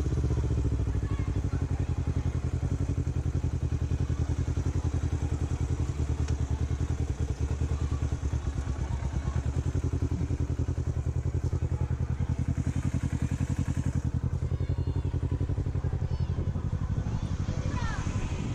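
A sport motorcycle engine idles with a steady, pulsing beat.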